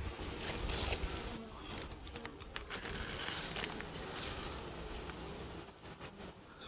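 Paper crinkles and rustles close by.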